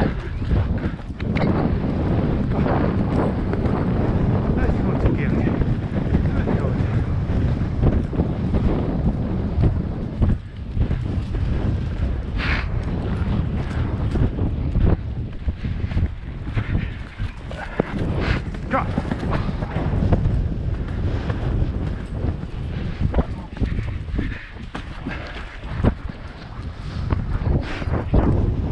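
A horse's hooves thud rapidly on a dirt trail.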